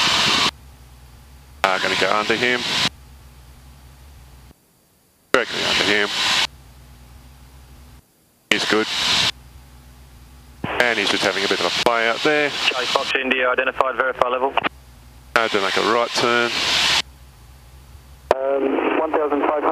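A light aircraft engine drones steadily.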